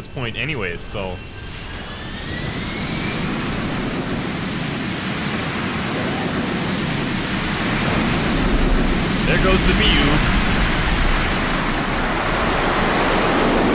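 The engines of an aircraft roar steadily and grow louder as it lifts off.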